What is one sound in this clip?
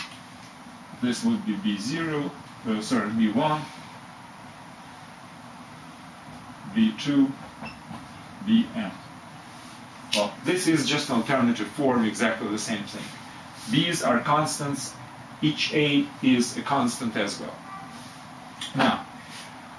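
A man explains calmly, close by.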